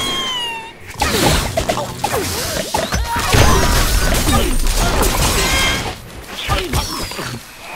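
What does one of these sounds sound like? Wooden and stone blocks crash and shatter.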